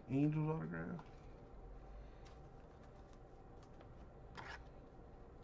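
A plastic card sleeve crinkles as a card slides in.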